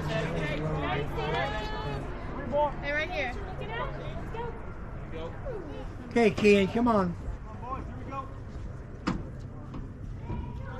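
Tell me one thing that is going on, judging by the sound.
Men talk and call out outdoors at a distance.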